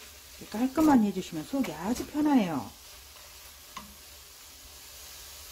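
Spoons stir vegetables in a frying pan.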